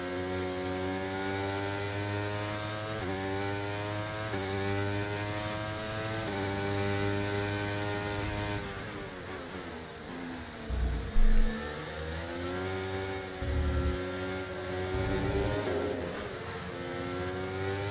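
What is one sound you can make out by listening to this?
A racing car engine screams at high revs, rising in pitch and dropping with each gear change.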